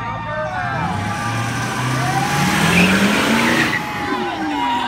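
A pickup truck engine revs loudly as it drives past.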